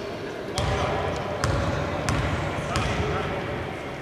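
A basketball bounces on a wooden court in a large echoing hall.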